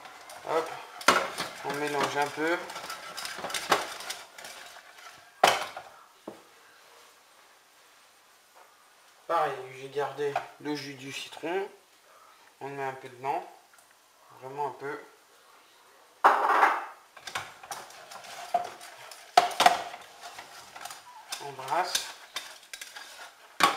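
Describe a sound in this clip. A steel pot clanks and scrapes on a gas stove's iron grate.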